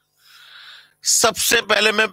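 A man speaks loudly and with animation, close to a microphone.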